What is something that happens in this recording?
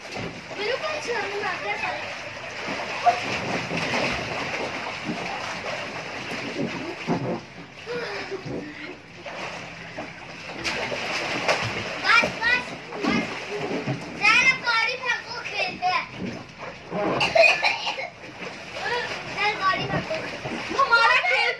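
Young boys shout and laugh excitedly nearby.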